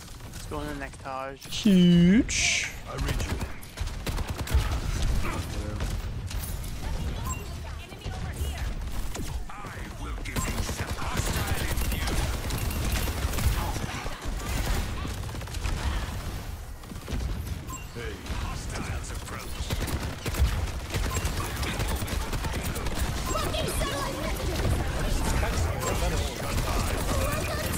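Rapid gunfire rattles throughout.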